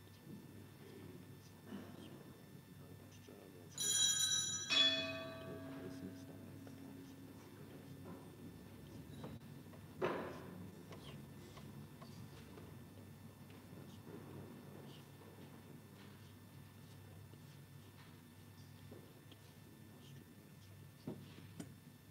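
A man murmurs prayers quietly at a distance.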